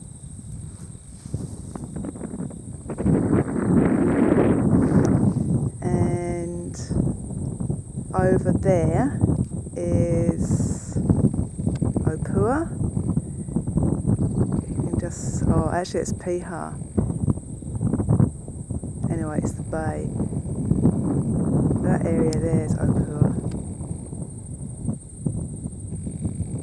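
Wind gusts roughly against the microphone outdoors.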